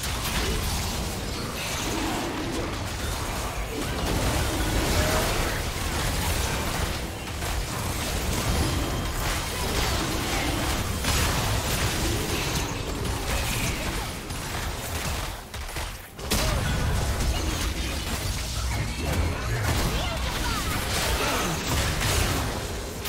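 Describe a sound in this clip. Heavy booming impacts hit again and again.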